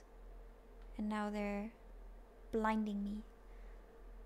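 A young woman hums two long, steady notes close to a microphone.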